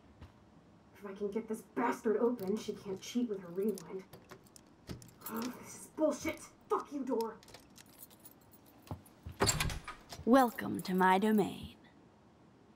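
A young woman mutters and curses in frustration close by.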